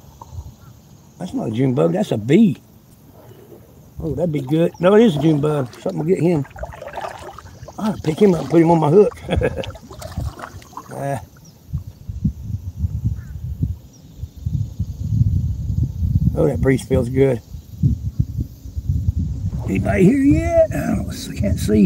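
Water laps gently against the hull of a small boat.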